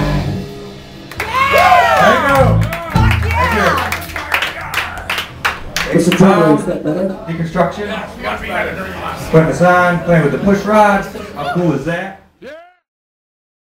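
A man sings loudly into a microphone at a live show.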